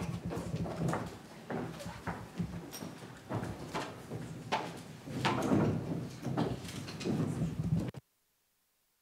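A seated crowd murmurs and chatters.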